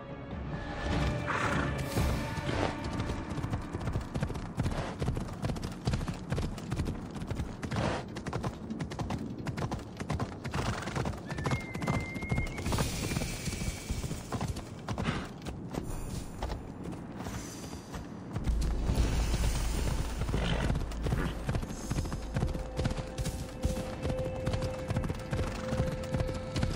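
Horse hooves pound steadily on dirt at a gallop.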